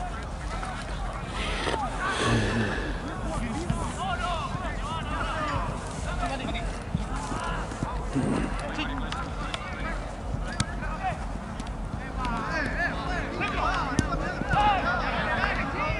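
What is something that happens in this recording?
Young men shout and call out across an open outdoor field.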